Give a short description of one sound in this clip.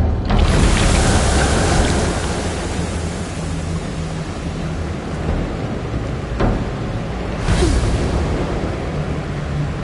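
A strong wind roars and rushes, with loud whooshing gusts.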